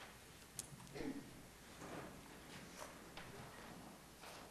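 A woman speaks quietly through a microphone.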